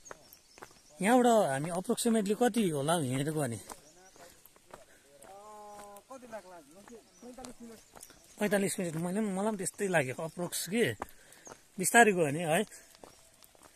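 Young men talk loudly and with animation close by outdoors.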